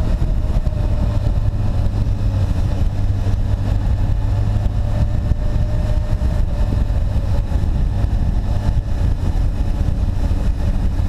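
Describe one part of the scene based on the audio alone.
A Honda Hornet inline-four motorcycle engine hums while cruising.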